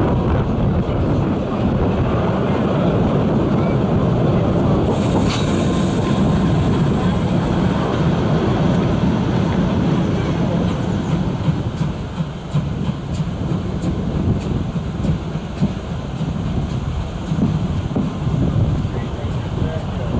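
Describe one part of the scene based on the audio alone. A train rumbles and clatters along the rails close by.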